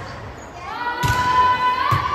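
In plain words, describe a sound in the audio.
A volleyball is struck hard with a sharp smack in an echoing gym.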